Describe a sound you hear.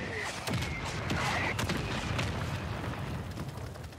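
An explosion booms in the distance.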